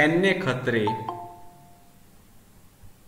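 A computer plays a short two-note notification chime.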